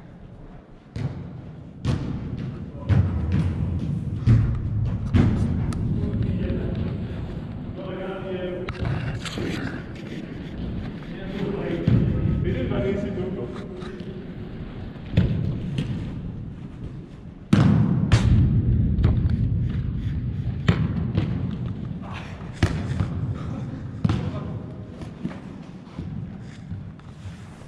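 A football thumps as players kick it, echoing in a large indoor hall.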